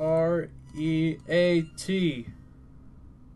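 Bright electronic notes play a short rising and falling tune.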